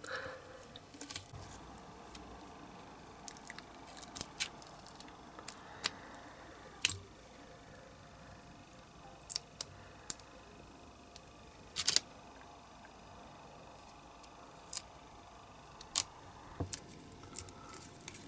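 Rubber parts click and tap as they are handled.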